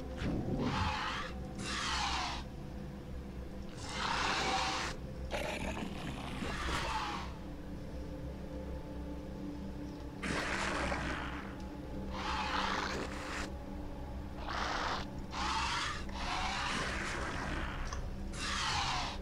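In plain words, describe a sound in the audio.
Hissing, rasping creature sounds come in repeated bursts.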